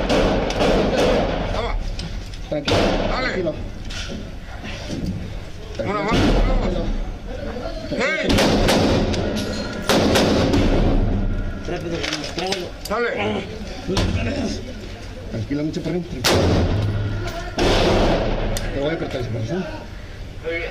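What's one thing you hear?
Men shout urgently at close range.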